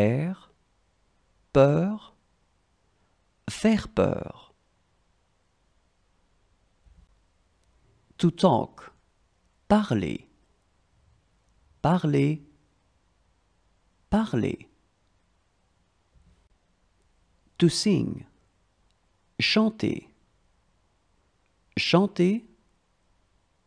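A young woman speaks single words clearly and slowly, one at a time, with pauses between them.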